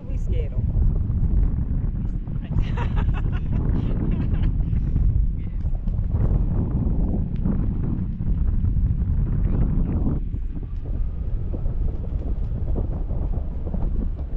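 Strong wind rumbles and buffets high in the open air.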